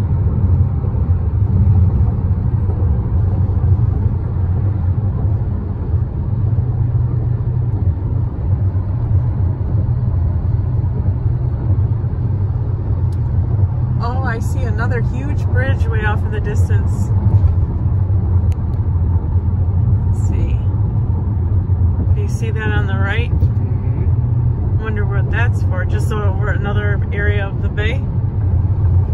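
A car drives along a highway with a steady low rumble of tyres and engine.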